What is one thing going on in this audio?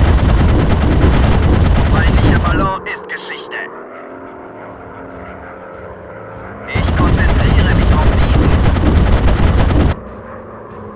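Machine guns fire in long rapid bursts.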